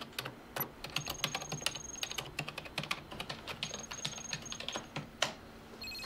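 A computer beeps softly.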